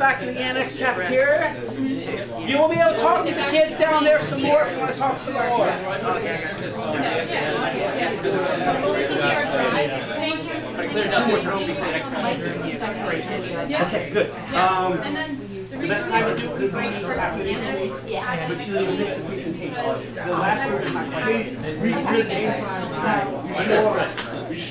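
A crowd of men and women chatter all at once, close by.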